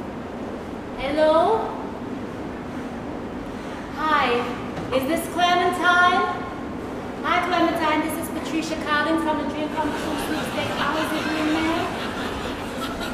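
A young woman talks with animation into a phone, heard from a distance in an echoing hall.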